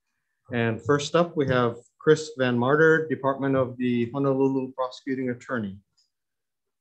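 An elderly man speaks calmly through a microphone on an online call.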